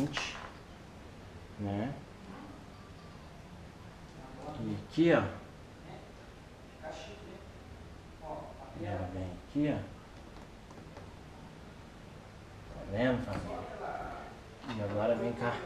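A young man talks calmly close by, in short bursts.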